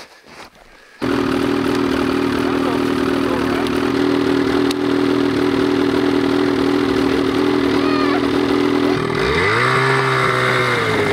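A snowmobile engine idles loudly close by.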